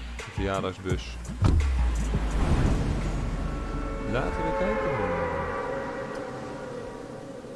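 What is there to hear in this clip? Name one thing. Wind rushes loudly past during a fast dive.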